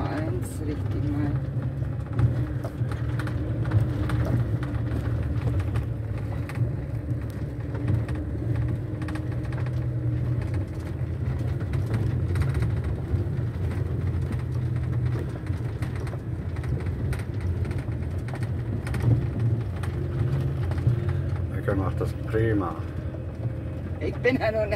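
Tyres crunch and rumble on gravel.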